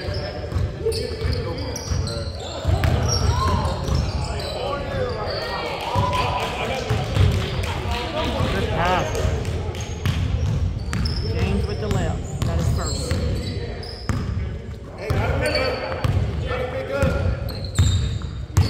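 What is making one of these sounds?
Players shout and call out to each other across the gym.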